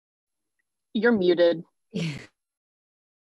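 A woman laughs briefly over an online call.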